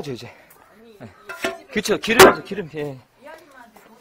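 A metal grate scrapes and clanks on stone.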